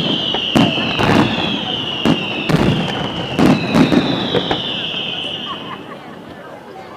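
Fireworks whistle shrilly.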